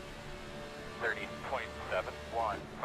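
A man speaks briefly through a microphone.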